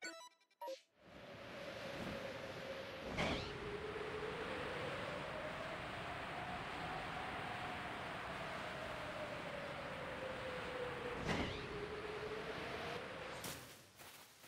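Wind rushes steadily past during a long glide.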